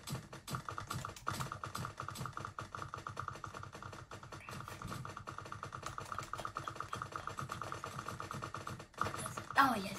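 A toy blaster fires in quick repeated shots.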